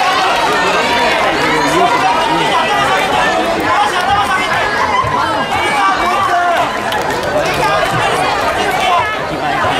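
A crowd of spectators chatters loudly in a large echoing hall.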